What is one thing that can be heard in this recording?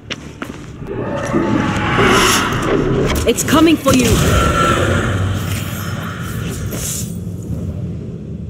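A magical burst whooshes and shimmers loudly.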